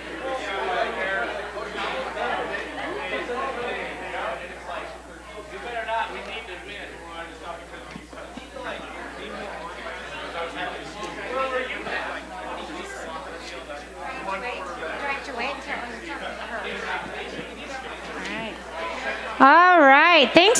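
A crowd of men and women chat and mingle.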